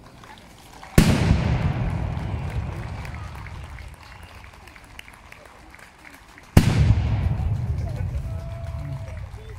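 A volley of muskets fires with a loud boom that echoes away.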